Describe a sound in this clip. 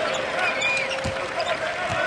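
A basketball thumps against the hoop.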